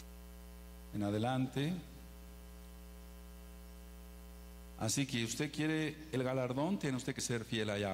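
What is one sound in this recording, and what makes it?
A man speaks into a microphone through a loudspeaker, with pauses.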